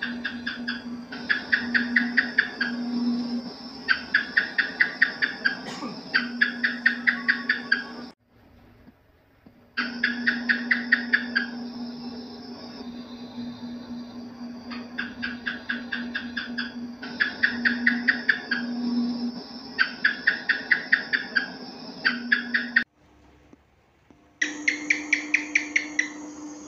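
A gecko calls in rapid bursts of sharp clicking chirps.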